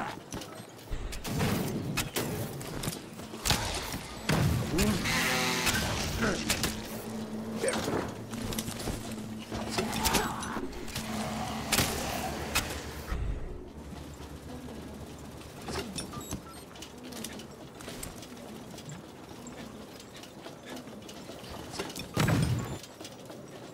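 Gunshots and blasts crackle in a fast, noisy fight.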